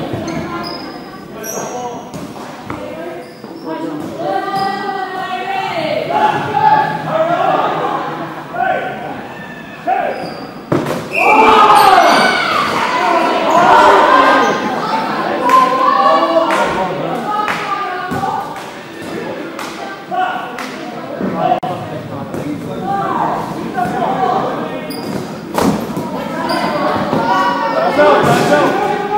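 Young players shout and call out to each other in a large echoing hall.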